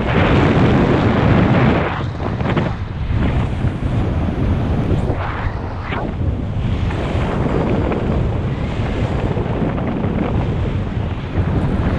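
Strong wind rushes and buffets against a microphone high in the open air.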